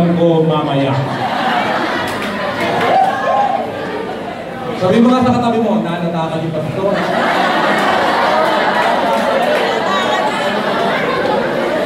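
A man speaks with animation into a microphone, heard through loudspeakers in an echoing hall.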